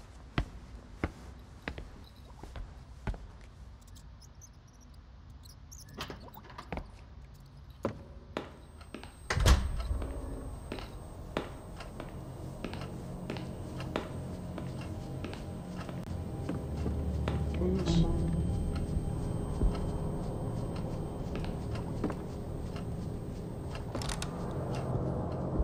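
A young man talks quietly into a microphone.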